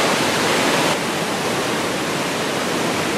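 A mountain stream rushes over rocks.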